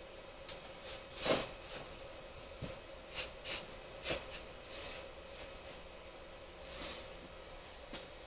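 Small objects tap and clatter on a tabletop close by.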